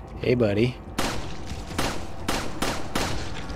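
A pistol fires several quick shots that echo.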